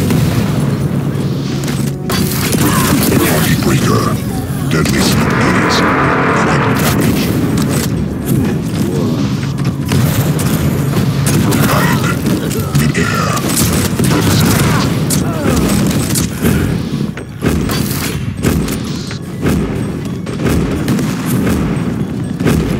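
Rapid gunfire rattles and blasts.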